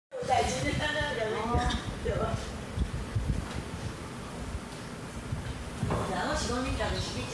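Karaoke music with a sung melody plays over loudspeakers in a room.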